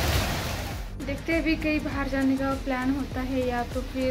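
A young woman sings softly close by.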